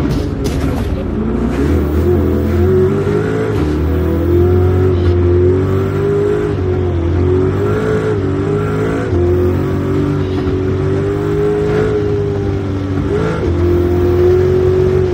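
A car engine revs hard and shifts through the gears.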